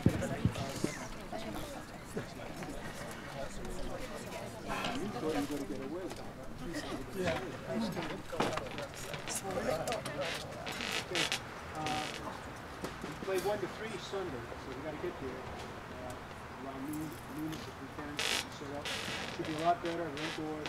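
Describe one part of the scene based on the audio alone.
A man speaks calmly outdoors, heard from a distance.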